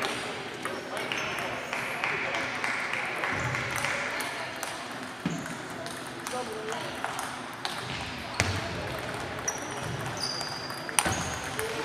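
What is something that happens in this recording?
Table tennis balls click against paddles and tables, echoing in a large hall.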